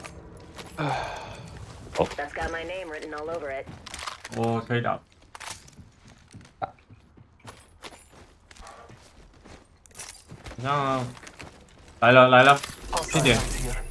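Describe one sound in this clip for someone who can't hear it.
A young man talks animatedly into a close microphone.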